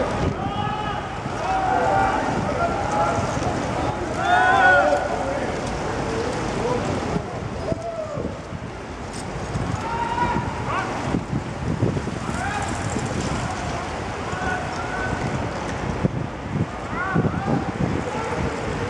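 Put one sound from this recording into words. A crowd of young men and women whoop and call out loudly as they pass by.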